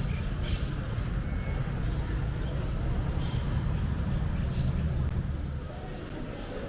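Traffic rumbles along a nearby street.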